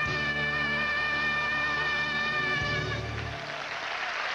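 A young woman sings loudly into a microphone.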